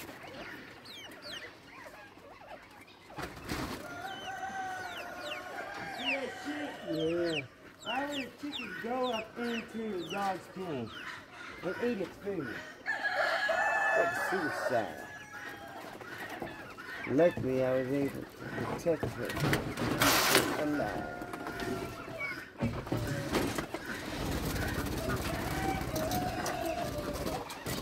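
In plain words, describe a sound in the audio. Many young birds peep and chirp close by.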